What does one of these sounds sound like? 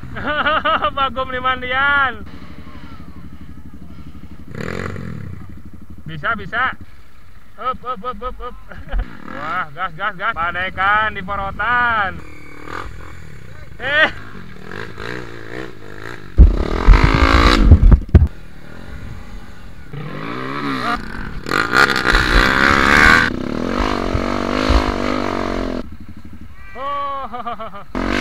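Dirt bike engines rev and roar over muddy ground.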